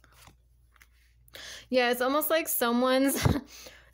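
A card slaps lightly onto a cloth-covered table.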